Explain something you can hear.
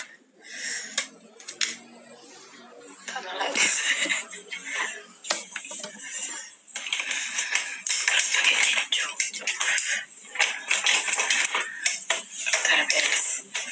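A young woman talks casually close to a phone microphone.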